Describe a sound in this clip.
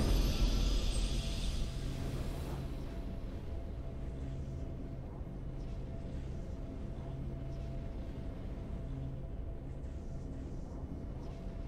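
A triumphant game fanfare plays softly and steadily.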